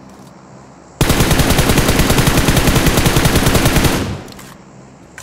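A rifle fires in a rapid, loud burst.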